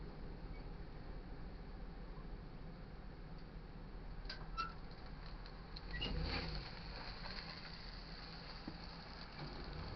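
A crossing gate arm whirs as it lifts.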